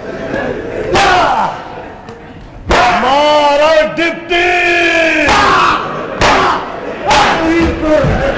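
A whip cracks sharply several times.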